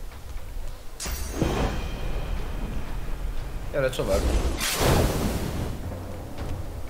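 A fiery blast whooshes and crackles.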